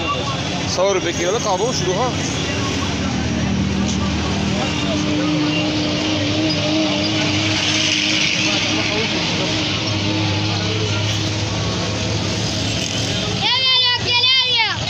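A busy outdoor market crowd murmurs around.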